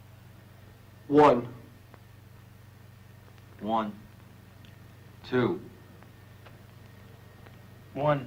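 Several men call out single short words, one after another.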